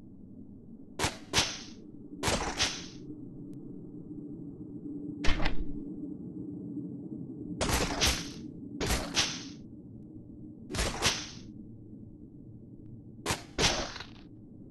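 Weapons swing and strike in quick pairs of sharp swooshes.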